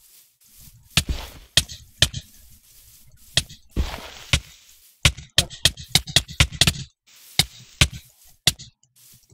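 Sword blows land with short, sharp thuds in quick succession.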